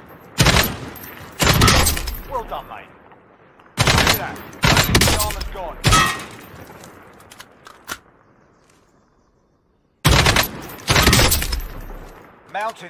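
A rifle fires single loud shots that echo and die away.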